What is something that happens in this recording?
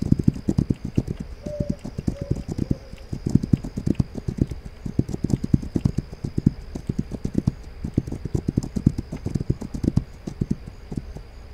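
A horse's hooves thud steadily at a gallop.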